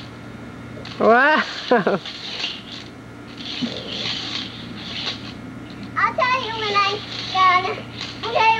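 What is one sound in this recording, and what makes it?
A young girl nearby calls out and squeals excitedly.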